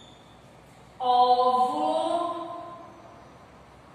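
A man speaks up close, drawing out a long vowel sound.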